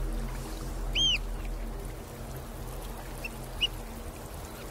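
Shorebirds call over the shore.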